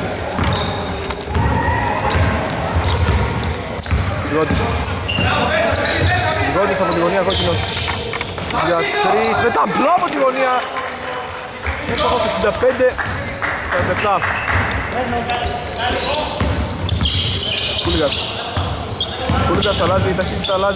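Men shout and call out to each other across the court.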